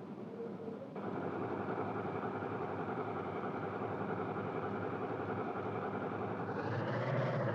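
A forklift engine drones steadily.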